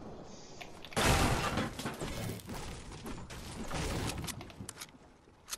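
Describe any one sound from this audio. A pickaxe strikes wood with repeated chopping thuds.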